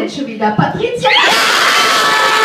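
A young woman shrieks with excitement close by.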